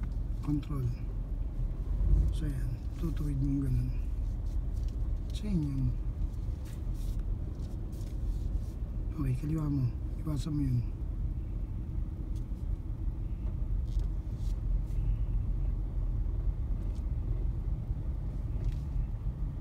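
A car engine runs with a low, steady rumble.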